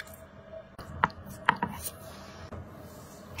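A knife slices through soft meat and taps a cutting board.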